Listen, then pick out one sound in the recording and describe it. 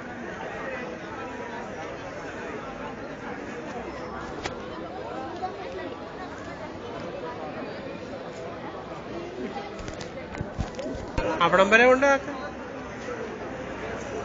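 A dense crowd murmurs and chatters outdoors.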